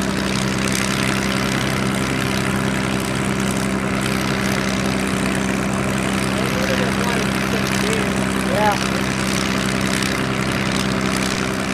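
A propeller plane's piston engine drones loudly and steadily close by.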